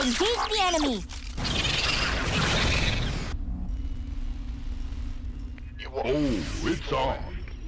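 Guns fire rapidly in a battle.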